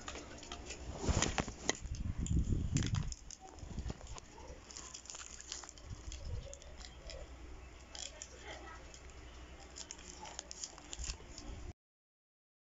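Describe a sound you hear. Paper rustles and crinkles close by as it is handled.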